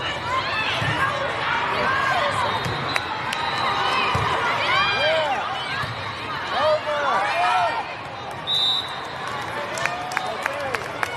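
Young women call out loudly to each other across the court.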